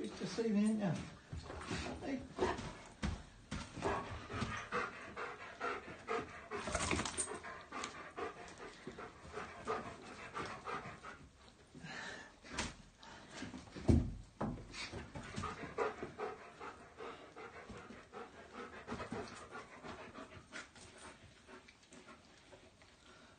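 A man talks excitedly and warmly to a dog close by.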